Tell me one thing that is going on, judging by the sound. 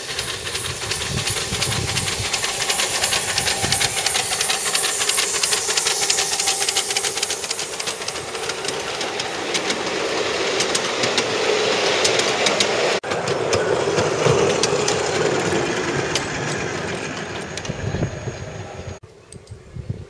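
A small steam locomotive hisses loudly as steam escapes.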